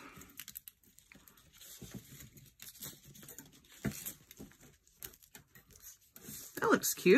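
Thin wire scrapes and clicks softly as fingers wrap it around a stone.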